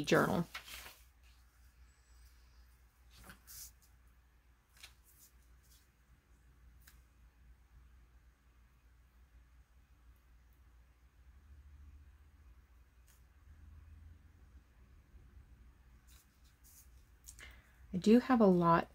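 Sheets of paper rustle and slide under hands.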